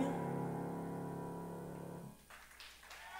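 A piano plays chords in a large hall.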